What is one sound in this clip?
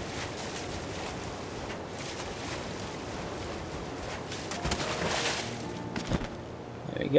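Water splashes steadily as a swimmer strokes.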